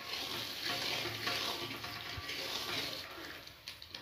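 A metal spoon scrapes and stirs against a metal pan.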